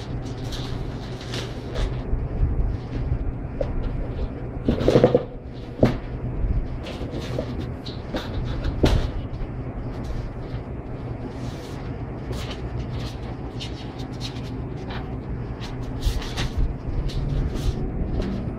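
Paper and cardboard rustle and crinkle as hands handle them.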